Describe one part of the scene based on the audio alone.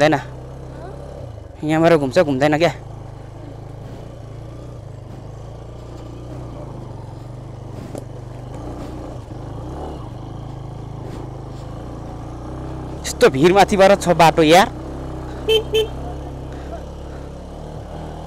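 A motorcycle engine runs with a steady low hum.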